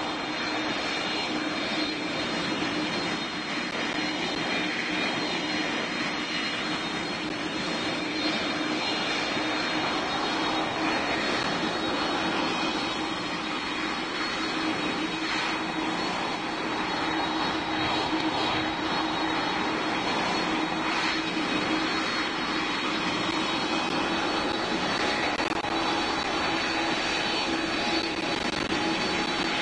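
A jet engine hums and whines steadily at idle.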